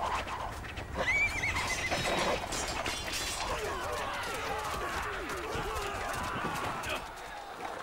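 A crowd of men shouts and cheers.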